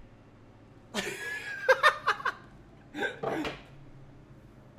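A young man yells excitedly.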